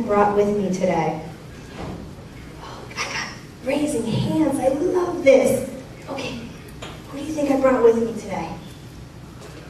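A woman speaks with animation, heard from a distance in an echoing room.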